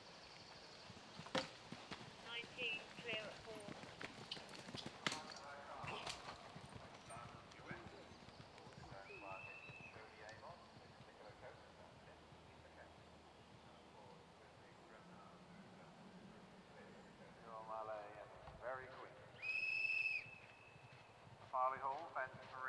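A horse gallops on grass with thudding hoofbeats.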